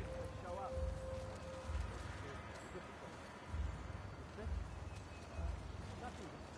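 Leaves rustle as someone creeps through dense leafy plants.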